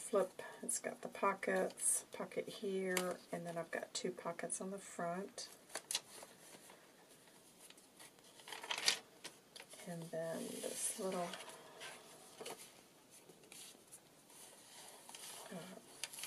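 Paper pages rustle and flap as they are turned by hand.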